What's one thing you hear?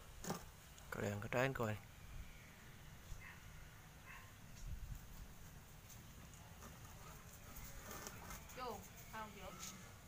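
A middle-aged man talks casually nearby, outdoors.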